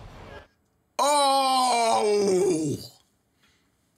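A young man shouts in a long drawn-out yell, close to a microphone.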